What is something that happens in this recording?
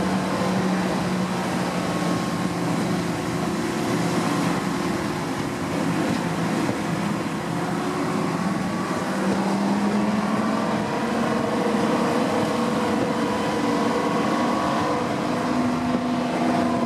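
A steam locomotive chuffs steadily.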